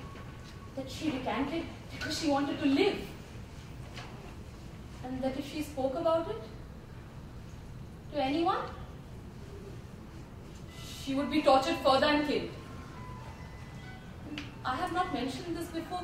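Young women talk with emotion, close by, in short exchanges.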